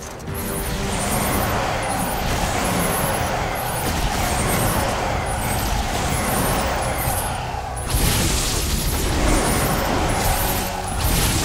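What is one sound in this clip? Blows thud and crack against enemies.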